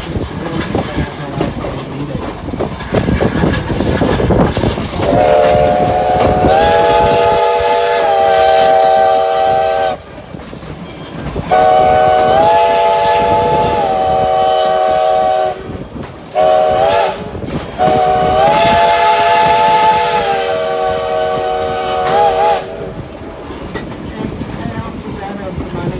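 Passenger coaches clatter and rumble along the rails.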